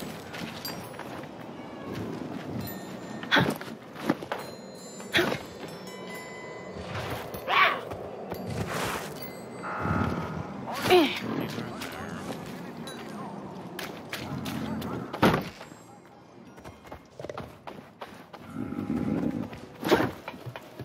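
Hands thump and scrape while climbing.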